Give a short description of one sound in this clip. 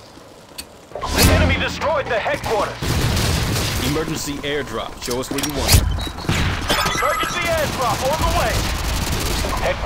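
A machine gun fires in bursts.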